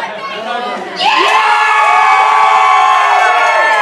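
A crowd of men and women cheers and whoops loudly.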